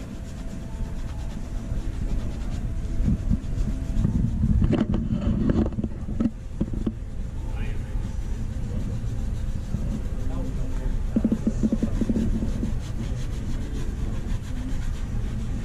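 A brush scrubs a sneaker with quick strokes.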